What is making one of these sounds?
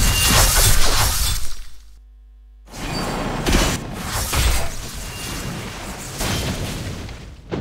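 Wind rushes loudly past in gusts.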